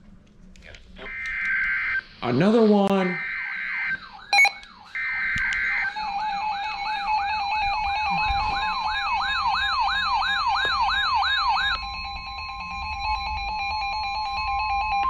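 Weather alert radios sound loud electronic alarm tones.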